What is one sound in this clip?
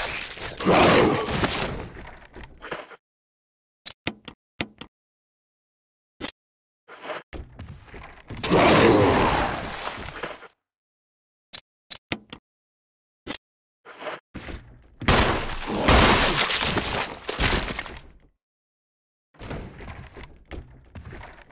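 A creature moans and groans loudly.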